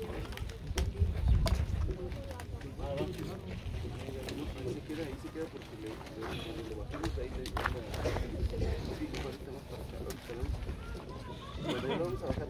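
Men and women in a crowd murmur and chant outdoors.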